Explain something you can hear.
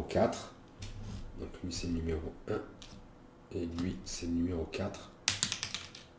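Small game pieces tap and click on a board.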